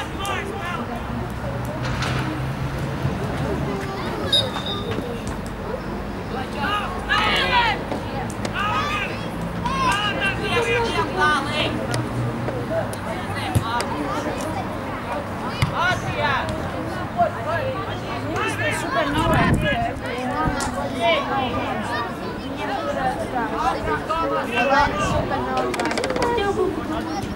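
Young men shout to each other across an open playing field.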